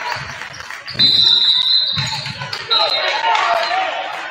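A referee's whistle blows shrill blasts.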